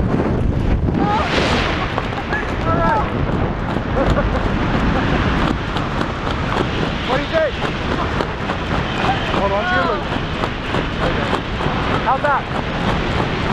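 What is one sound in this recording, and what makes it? A young woman shouts and screams with excitement.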